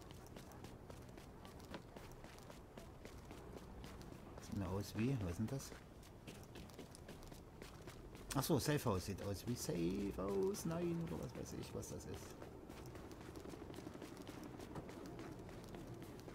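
Footsteps crunch quickly over snow.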